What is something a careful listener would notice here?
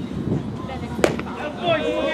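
A baseball bat cracks against a pitched ball.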